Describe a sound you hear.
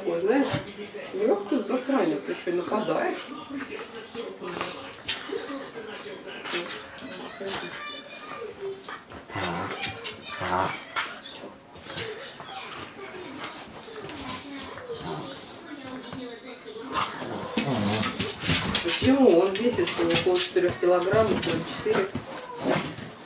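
Two dogs growl and snarl up close.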